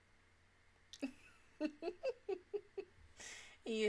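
A young woman laughs in bursts close to a microphone.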